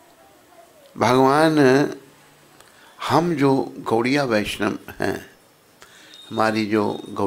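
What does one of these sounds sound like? An elderly man sings into a microphone in long, drawn-out phrases.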